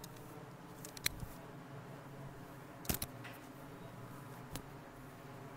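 Scissors snip through wet hair with short crisp clicks.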